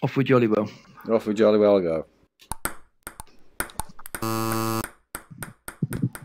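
A ping pong ball bounces on a table with light taps.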